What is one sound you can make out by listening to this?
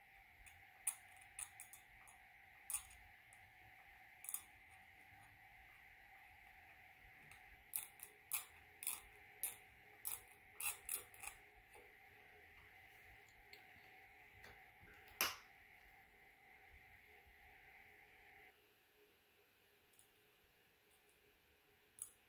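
A metal instrument clicks and scrapes against plastic teeth.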